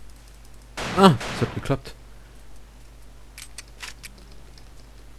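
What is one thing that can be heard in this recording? A pistol fires single shots that echo in a hard-walled room.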